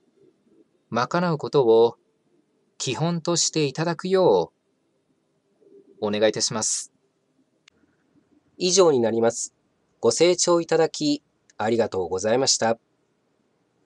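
A middle-aged man speaks calmly in short phrases through a microphone.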